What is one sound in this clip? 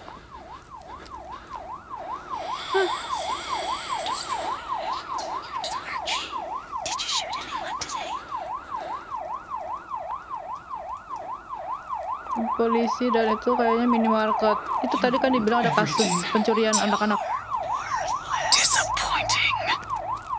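A police siren wails steadily, rising and falling quickly.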